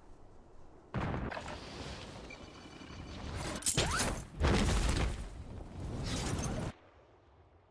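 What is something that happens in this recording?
Wind rushes past during a parachute descent in a game.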